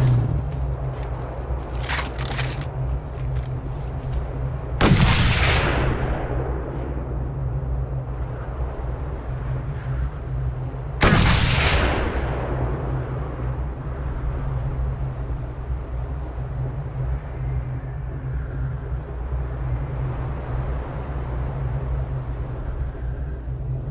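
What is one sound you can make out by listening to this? A vehicle engine rumbles steadily at idle.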